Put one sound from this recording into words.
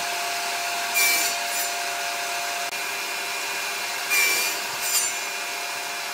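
A table saw blade cuts through wood in short bursts.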